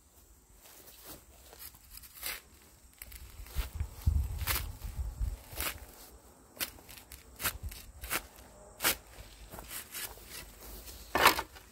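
A metal spade scrapes and crunches into soil.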